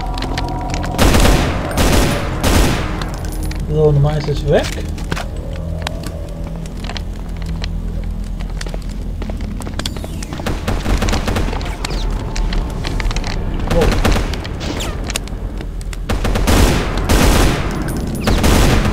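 A gun fires in loud, rapid bursts.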